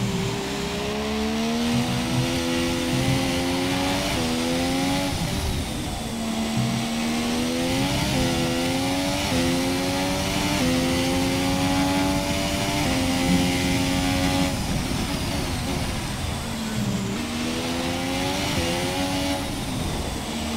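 A racing car engine roars, rising in pitch through each gear and dropping at each shift.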